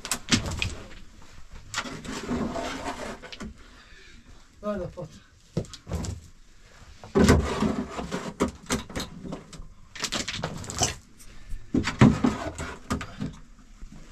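A shovel scrapes and thuds against a metal wheelbarrow.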